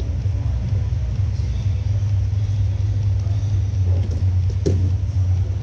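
Bodies thump and shuffle on padded mats in a large echoing hall.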